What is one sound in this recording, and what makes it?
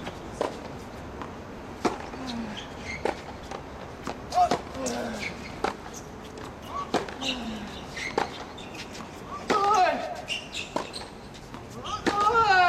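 Tennis balls are struck with sharp pops, back and forth in a steady rally.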